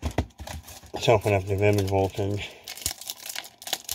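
A foil wrapper tears open.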